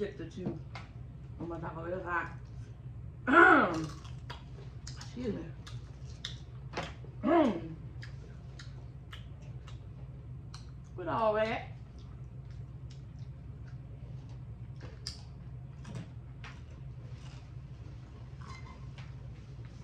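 Crunchy taco shells crunch as they are bitten and chewed.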